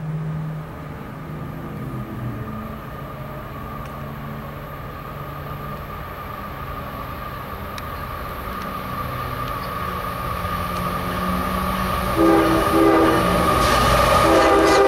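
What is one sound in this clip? A train rumbles closer along the tracks, growing louder.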